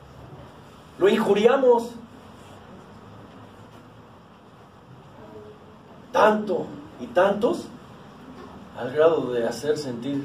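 A middle-aged man speaks in short bursts with long pauses.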